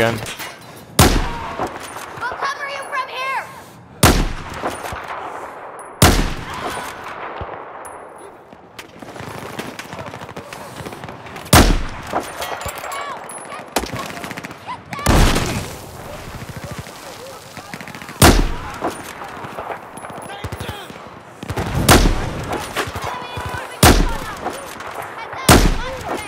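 A sniper rifle fires loud, sharp shots that echo.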